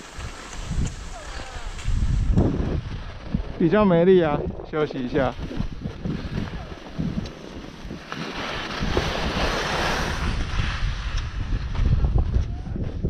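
Snow gear slides slowly and scrapes over packed snow.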